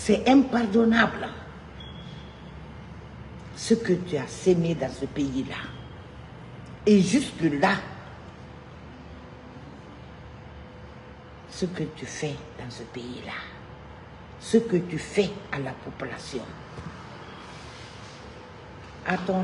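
A middle-aged woman speaks with feeling in bursts, close to a microphone.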